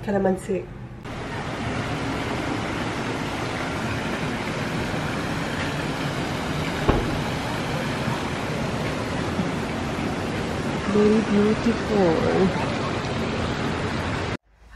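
Water splashes and trickles steadily into a pool outdoors.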